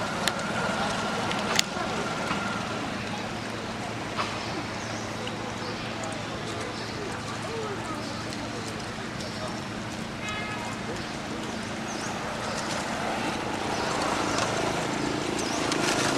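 A baby monkey chews and nibbles food with soft smacking sounds.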